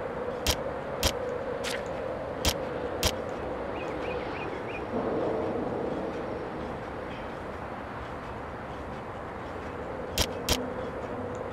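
Short sharp menu clicks sound now and then.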